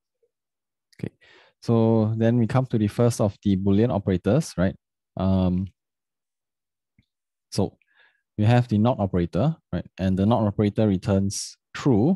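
A young man speaks calmly and close to a microphone, as if explaining.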